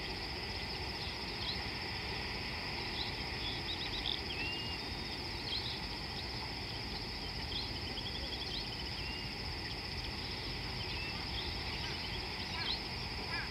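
River water laps gently against a muddy bank.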